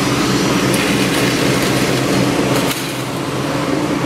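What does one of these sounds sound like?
A metal sign clatters as it drops onto the ground.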